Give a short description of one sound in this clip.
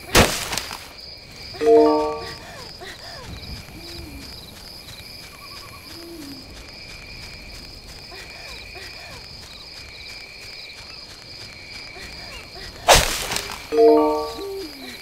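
Light footsteps patter quickly over grass.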